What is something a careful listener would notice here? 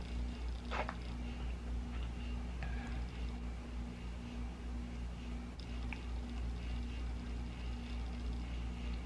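A woman speaks softly and calmly, close to a microphone.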